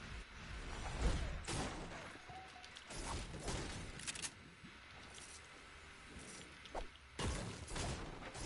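A pickaxe strikes and smashes through wooden walls with sharp cracks.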